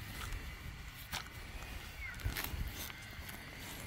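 A hand digger stabs into the ground.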